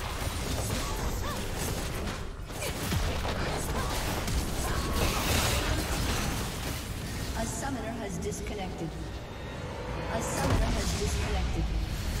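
Spell effects whoosh and crackle during a fight.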